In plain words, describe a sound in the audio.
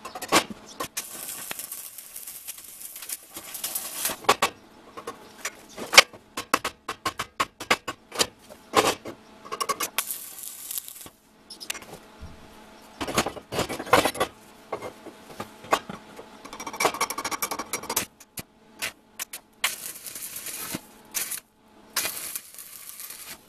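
A stick welding arc crackles and sizzles on steel.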